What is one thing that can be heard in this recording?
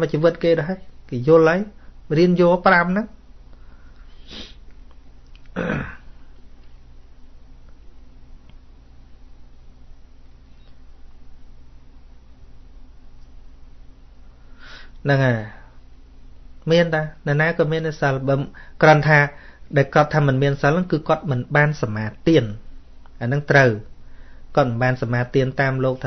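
A middle-aged man speaks calmly and earnestly into a microphone, with long pauses.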